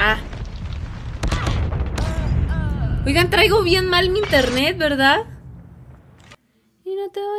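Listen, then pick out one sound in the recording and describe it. Gunfire rattles in a video game.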